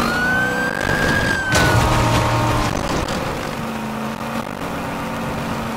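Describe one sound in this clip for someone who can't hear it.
Water splashes under a car's tyres.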